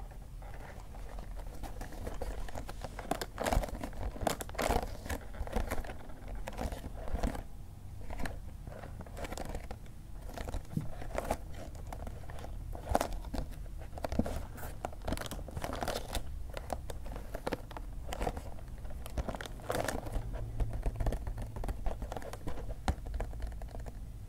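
A cardboard box rustles and taps as hands turn it over.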